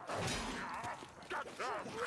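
A sword strikes metal armour with a sharp clang.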